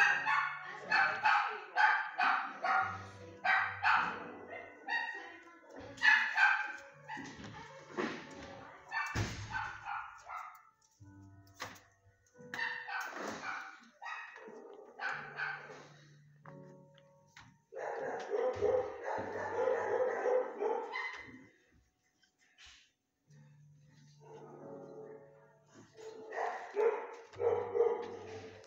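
A dog shuffles about inside a wire crate, its paws scraping on the bedding.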